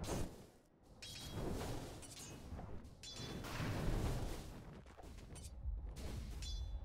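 Magic blasts whoosh and crackle in a fast fantasy battle.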